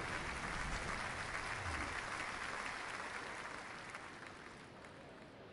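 A crowd cheers and murmurs.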